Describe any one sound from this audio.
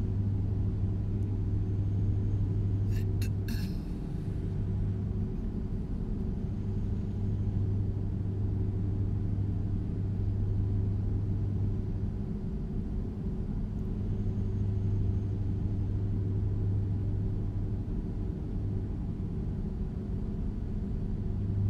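A truck's diesel engine drones steadily at a low pitch.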